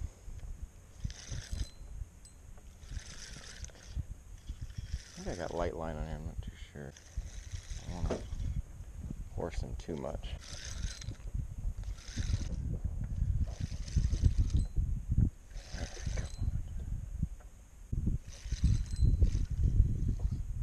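A fishing reel whirs as line is cranked in.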